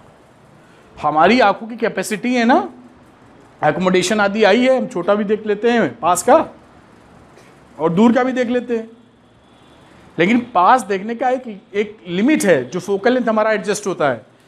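A middle-aged man speaks calmly and clearly, close by.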